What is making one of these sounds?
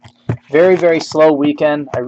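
Plastic wrapping crinkles and tears as a pack is opened.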